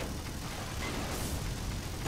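Game explosions boom.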